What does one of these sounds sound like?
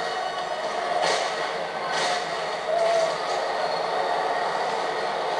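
Video game gunfire and sound effects play through a loudspeaker in short bursts.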